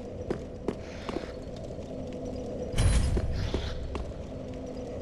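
A sword swings and clashes in a game fight.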